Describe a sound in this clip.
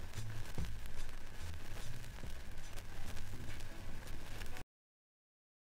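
A vinyl record crackles and pops.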